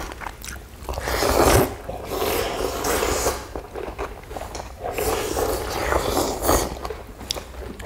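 People slurp noodles loudly, close by.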